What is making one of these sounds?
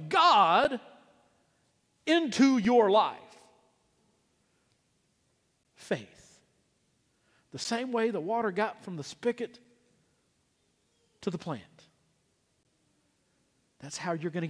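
A man sings short melodic phrases with pauses in between.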